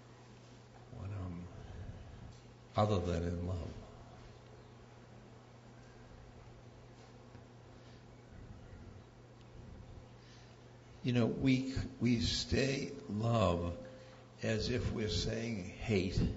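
An elderly man speaks slowly and calmly into a microphone, with long pauses.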